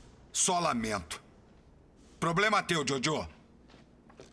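A man speaks tensely and urgently, close by.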